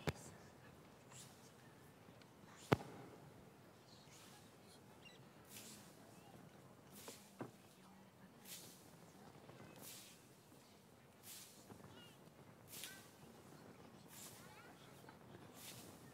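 Sickles swish and rustle through dry wheat stalks again and again.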